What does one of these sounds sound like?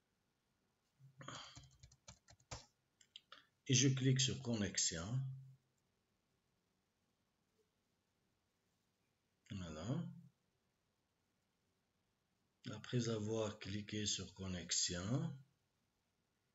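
A man speaks calmly through a computer microphone in short bursts.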